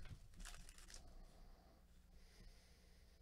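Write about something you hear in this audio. Cards shuffle and slide against each other.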